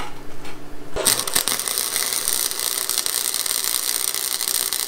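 An electric welder crackles and sizzles steadily.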